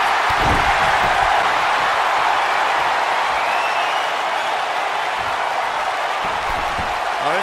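Wrestlers' bodies thud onto the ring mat.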